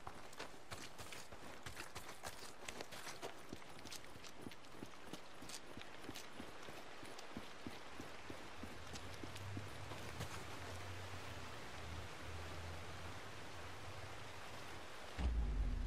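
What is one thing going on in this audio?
Footsteps run quickly over a forest floor.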